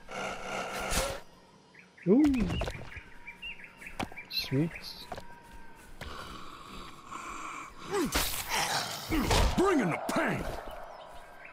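A blade slashes and thuds into flesh.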